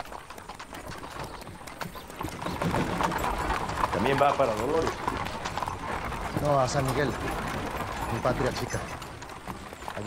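A horse-drawn carriage rattles and creaks along a dirt track.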